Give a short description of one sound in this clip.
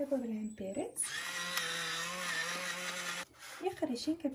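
A pepper grinder grinds with a dry crackling.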